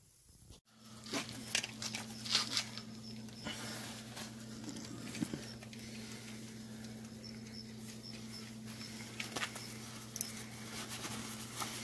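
Fabric rustles and crinkles as hands pull at it.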